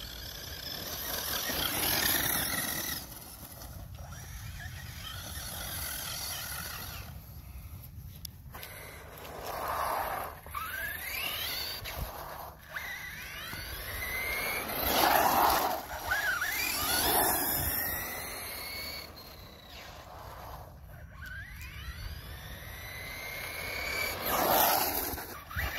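A small electric motor whines and rises in pitch as a toy car speeds up.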